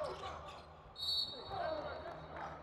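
A referee's whistle blows once, sharp and shrill.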